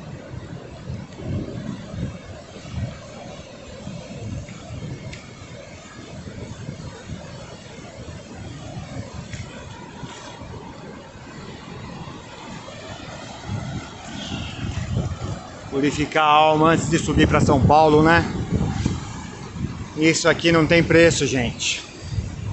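Waves wash and break onto a shore.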